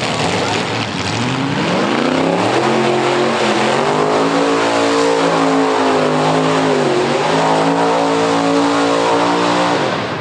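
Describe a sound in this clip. Car engines rev loudly in the distance.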